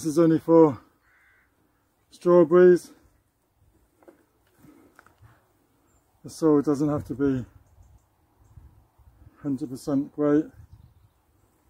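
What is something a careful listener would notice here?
An older man speaks calmly, close by, in short phrases.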